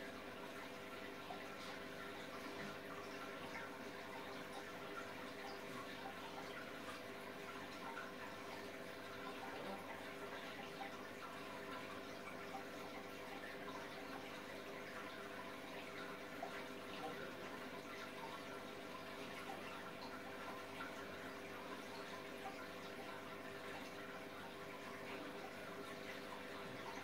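An aquarium pump hums steadily.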